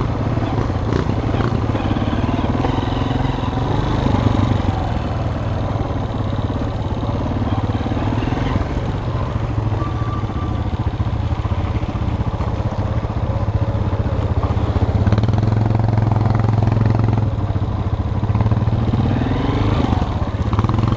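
Tyres crunch over a rough dirt track.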